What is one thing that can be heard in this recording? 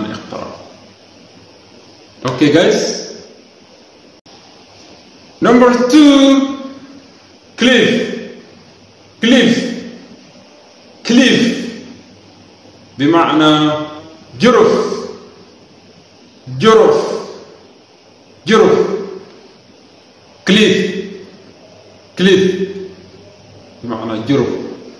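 A man speaks words one at a time into a close microphone, slowly and clearly, with pauses between them.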